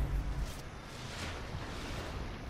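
A shimmering whoosh sounds as a game character respawns.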